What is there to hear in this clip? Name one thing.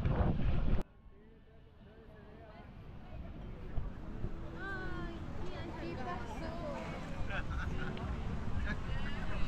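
A crowd of men and women chat and laugh nearby.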